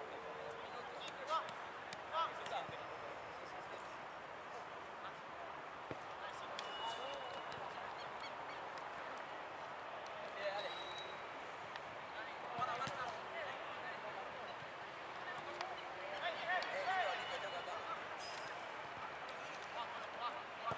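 Young men shout and call out across an open outdoor pitch.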